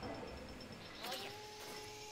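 A machine hisses as it vents steam.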